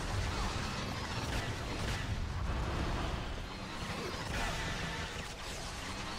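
Explosions boom and crash.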